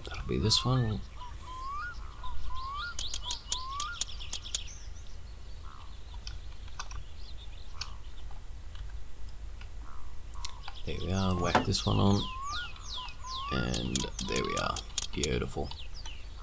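A wrench ratchets as it turns a bolt, with quick repeated clicks.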